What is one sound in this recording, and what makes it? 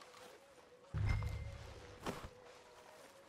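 A heavy sack thumps and rustles as it is hoisted onto a shoulder.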